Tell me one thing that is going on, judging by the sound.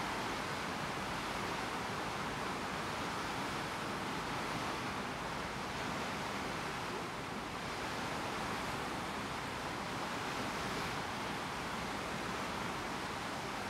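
Water rushes and splashes steadily against a ship's bow cutting through the sea.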